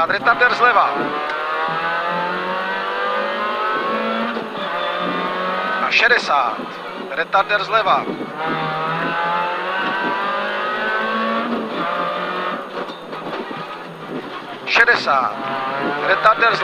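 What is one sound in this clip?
A man reads out notes quickly through a helmet intercom.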